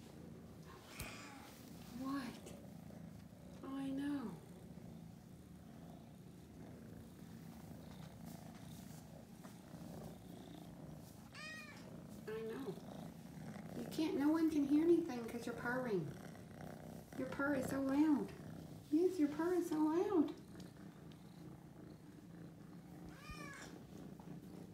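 Cats meow loudly and repeatedly, close by.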